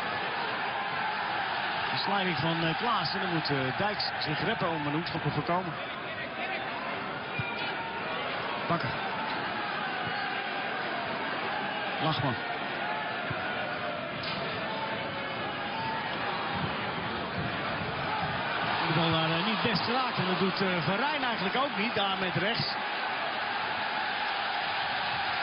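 A large stadium crowd murmurs and chants steadily throughout.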